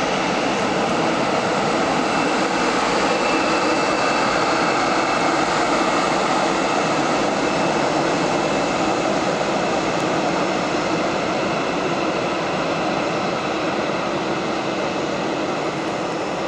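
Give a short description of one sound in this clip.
A twin-engine jet airliner taxis past with its turbofan engines whining at idle.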